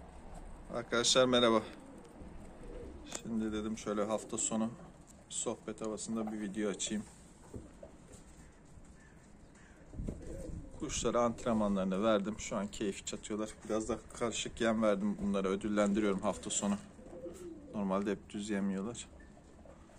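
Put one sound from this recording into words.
Pigeons coo nearby in low, rolling bursts.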